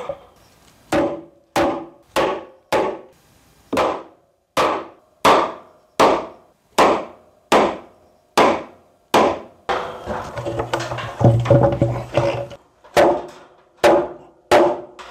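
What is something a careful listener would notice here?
A mallet knocks a wooden beam into a joint.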